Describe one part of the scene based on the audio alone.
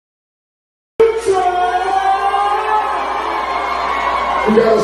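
A crowd cheers loudly at a concert.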